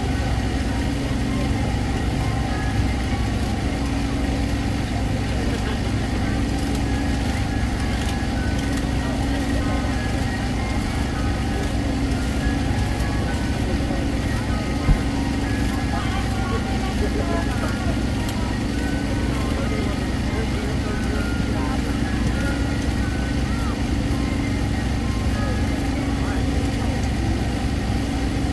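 A crowd of people chatter outdoors all around.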